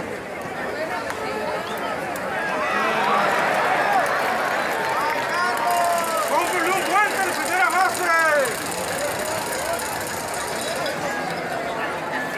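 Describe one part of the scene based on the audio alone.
A large crowd chatters and cheers in an open stadium.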